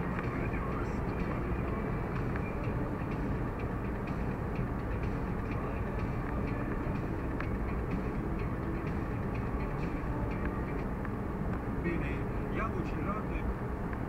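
Tyres roll on a road with a steady roar.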